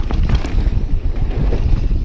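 Bicycle tyres clatter over wooden boards.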